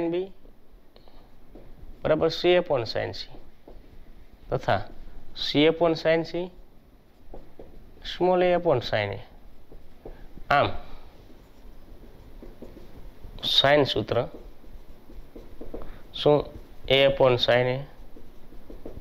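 A man speaks calmly and clearly, in short phrases with pauses.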